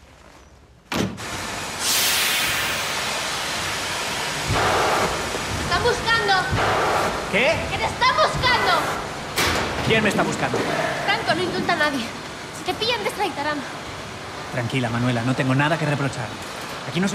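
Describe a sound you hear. Machinery hums steadily in a large echoing hall.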